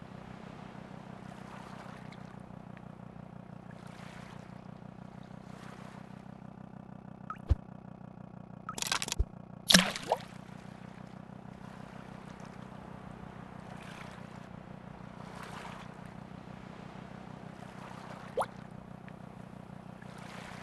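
Water splashes in a boat's wake.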